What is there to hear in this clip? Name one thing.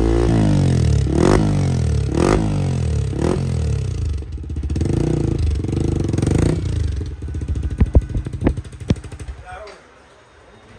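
A motorcycle engine rumbles and revs loudly through its exhaust.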